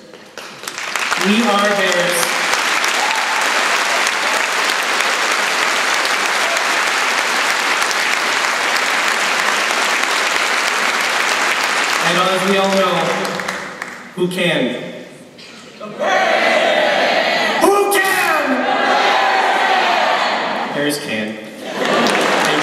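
A man speaks into a microphone, heard over loudspeakers in a large hall.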